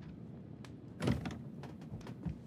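A door latch clicks as a door opens.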